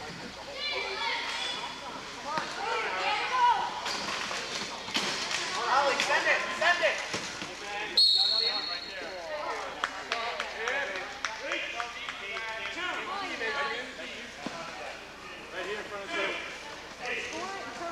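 Men talk and shout in a large echoing gym.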